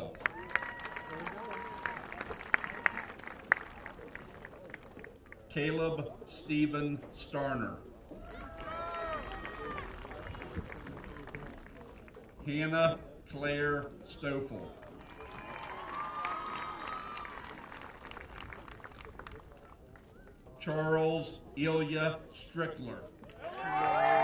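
A crowd cheers and claps in the distance.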